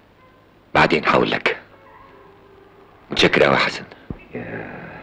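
A man talks quickly and close by.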